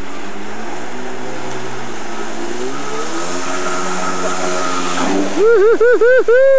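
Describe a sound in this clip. A personal watercraft engine roars and revs across the water.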